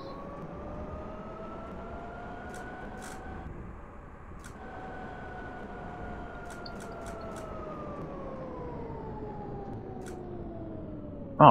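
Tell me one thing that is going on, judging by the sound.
A tram's electric motor whines, its pitch sinking as the tram slows.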